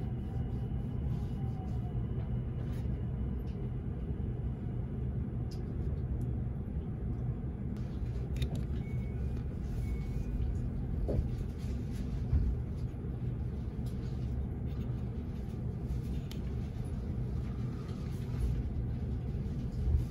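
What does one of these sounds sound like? A low steady rumble fills the air outdoors.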